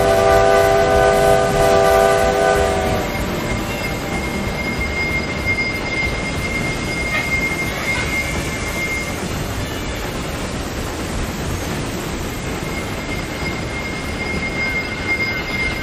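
A steam locomotive rumbles steadily along the rails.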